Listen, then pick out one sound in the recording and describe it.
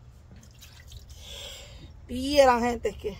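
Water splashes from a bowl into a basin.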